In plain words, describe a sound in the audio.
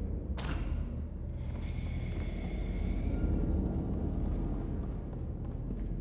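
Small footsteps patter across a wooden floor.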